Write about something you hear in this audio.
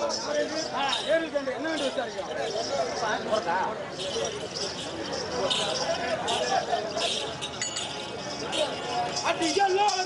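Ankle bells jingle with dancers' stamping steps.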